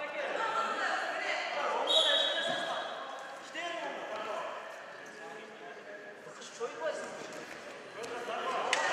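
Spectators chatter and call out in an echoing hall.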